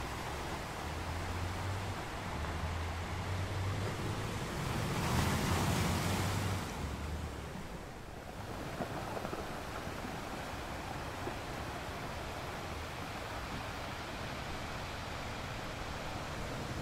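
Water swirls and hisses among rocks close by.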